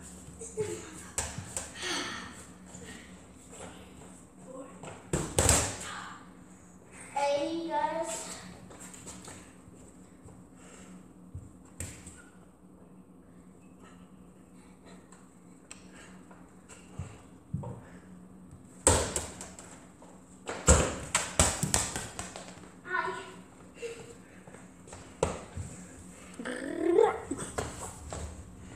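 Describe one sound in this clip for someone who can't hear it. Children's footsteps thump and patter on a hard floor.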